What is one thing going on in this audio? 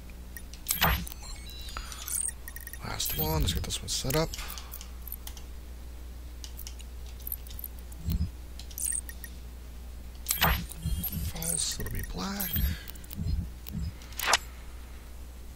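Short electronic clicks and swooshes sound as game menus open and close.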